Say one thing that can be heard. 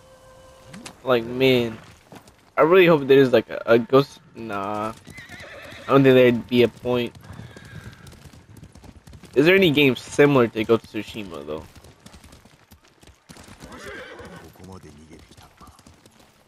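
A horse gallops with hooves thudding on a dirt path.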